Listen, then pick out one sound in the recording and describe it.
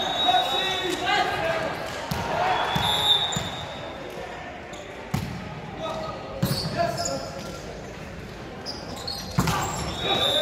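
Players hit a volleyball with sharp slaps in a large echoing gym.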